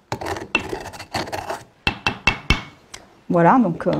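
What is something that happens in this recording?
A pestle grinds and knocks in a mortar.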